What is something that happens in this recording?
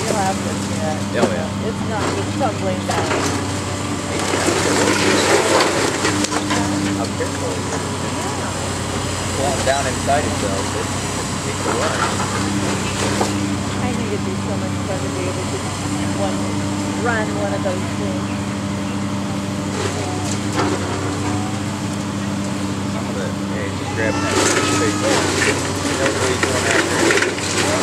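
Concrete and debris crash and crumble as a demolition claw tears at a building.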